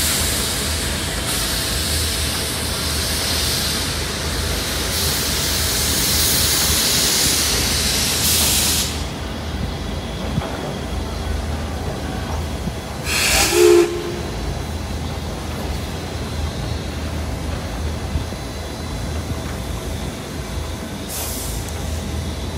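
A steam locomotive rumbles slowly along the tracks.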